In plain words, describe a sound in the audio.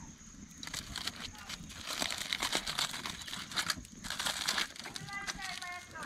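Aluminium foil crinkles.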